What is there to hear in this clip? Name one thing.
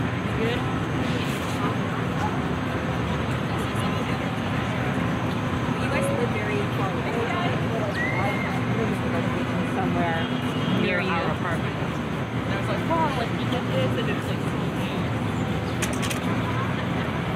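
A steady hum of distant city traffic fills the open air.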